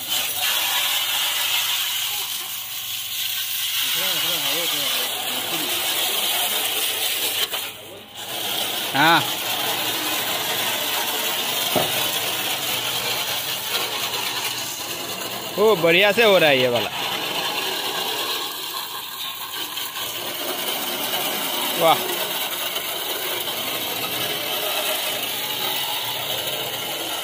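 A pressure washer sprays water in a steady hissing rush against a car.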